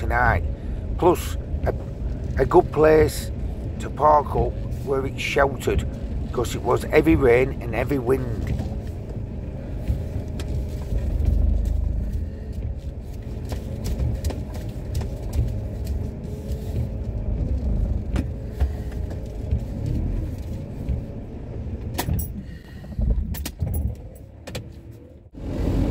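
A van engine runs with a low rumble.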